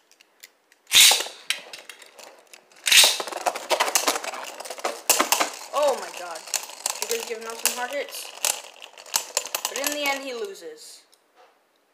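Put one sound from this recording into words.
Spinning tops whirr as they land and grind across a plastic surface.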